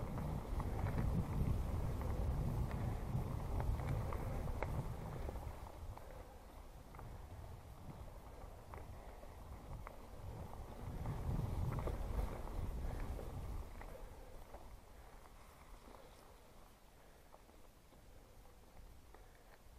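Wind rumbles past a bicycle rider.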